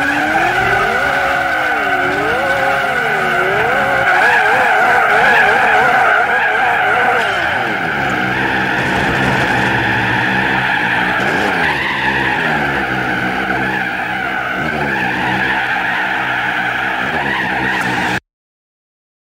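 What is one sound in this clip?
A racing car engine revs loudly, then roars steadily as the car speeds up.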